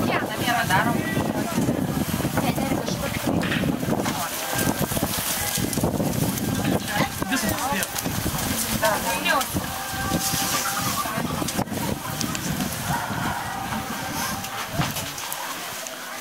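Children and women chatter nearby outdoors.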